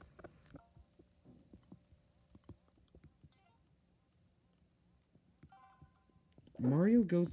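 A video game menu gives soft beeps as options are picked.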